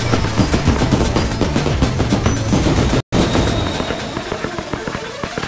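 Fireworks burst and crackle in quick succession.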